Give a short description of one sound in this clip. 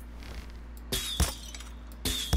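A vase shatters with a sharp crash.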